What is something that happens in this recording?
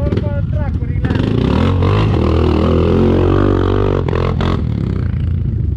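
A quad bike's engine revs hard as it climbs over rocks.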